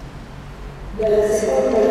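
A middle-aged woman speaks into a microphone, echoing through a large hall.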